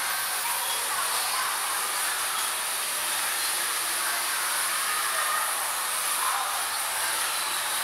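Bumper cars hum and roll across a hard floor in a large echoing hall.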